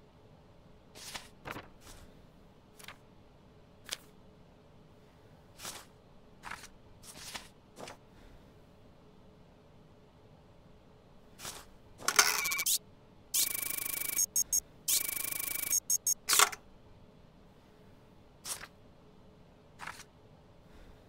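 Papers slide and shuffle in short bursts.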